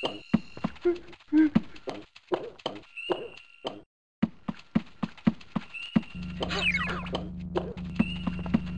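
A game character's footsteps patter quickly across the ground.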